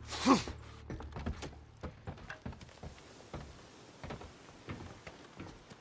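Footsteps thud on wooden planks.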